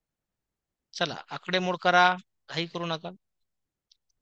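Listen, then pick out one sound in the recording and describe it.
A man speaks briefly and calmly into a microphone.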